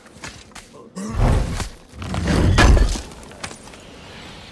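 A heavy chest lid is forced open with a loud, deep thud.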